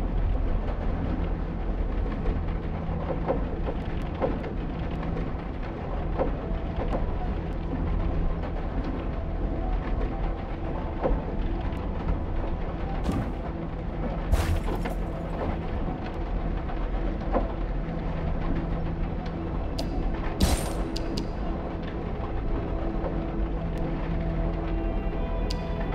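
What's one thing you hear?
Slow, dark music plays steadily throughout.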